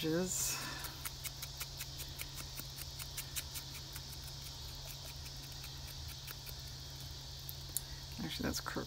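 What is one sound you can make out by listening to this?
An ink pad taps repeatedly against paper.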